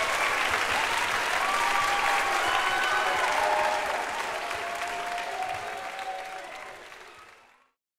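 An audience applauds and cheers in a large hall, then the applause fades away.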